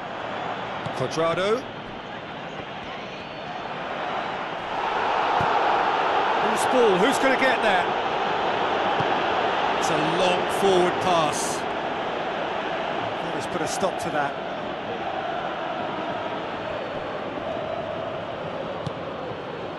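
A stadium crowd roars and chants.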